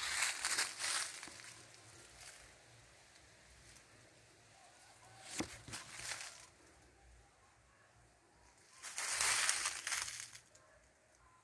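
Wind gusts rustle through the leaves of a tree.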